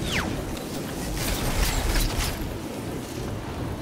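A weapon clicks and clatters as it is swapped.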